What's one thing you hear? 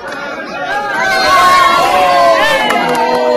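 Women cheer and shout loudly close by.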